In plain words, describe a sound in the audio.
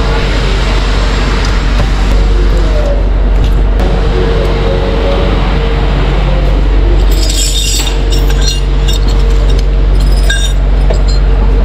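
A vehicle engine hums steadily, echoing in a tunnel.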